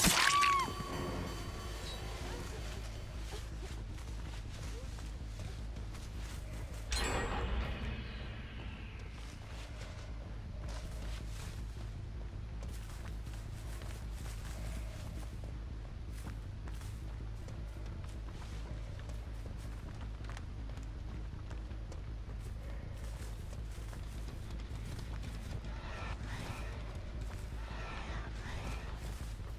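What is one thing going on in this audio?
Footsteps rustle steadily through tall grass and dry leaves.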